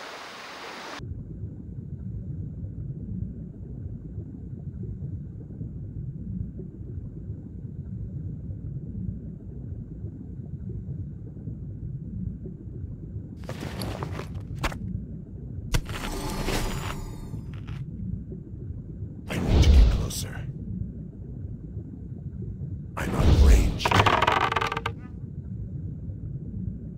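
Water rumbles and churns steadily.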